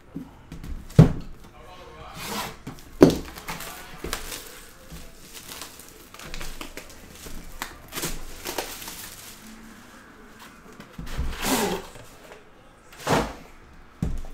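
A cardboard box knocks against a table.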